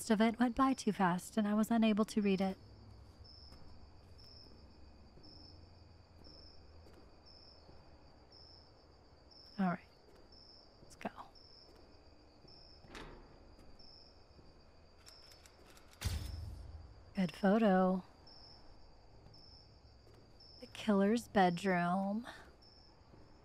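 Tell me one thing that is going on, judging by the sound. A young woman talks into a microphone in short bursts.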